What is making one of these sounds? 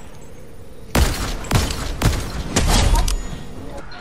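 A sniper rifle fires sharp, loud shots.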